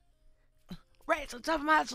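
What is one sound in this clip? A man speaks loudly with animation close by.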